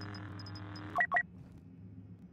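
A short electronic chime sounds as a menu choice is made.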